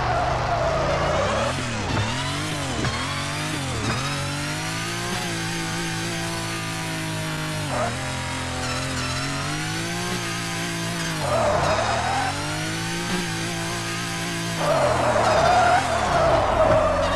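A game car engine hums and revs, rising and falling in pitch.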